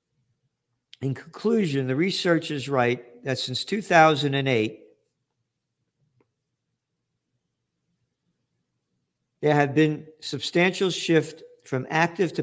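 An elderly man reads aloud slowly, close to a microphone.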